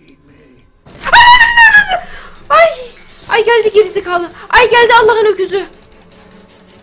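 A young woman shrieks loudly in fright.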